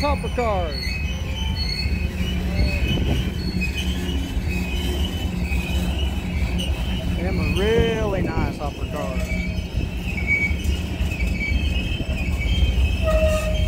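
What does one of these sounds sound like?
Steel wheels squeal against the rails.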